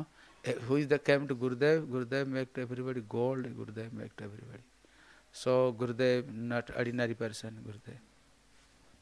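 A man sings loudly into a microphone, in long wavering phrases.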